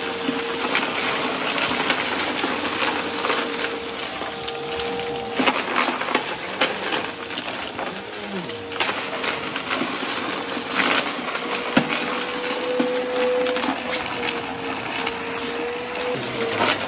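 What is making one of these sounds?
Debris rattles and clicks as a vacuum cleaner sucks it up from a rug.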